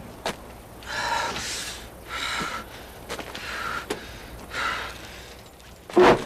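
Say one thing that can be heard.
A man speaks firmly and calmly nearby.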